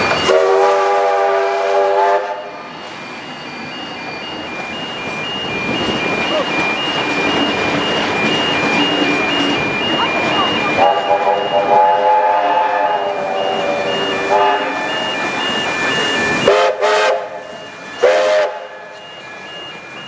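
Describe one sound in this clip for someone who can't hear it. A train rumbles past over the rails.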